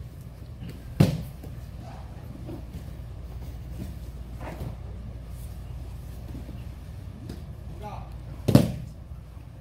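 Bodies thump onto a padded mat.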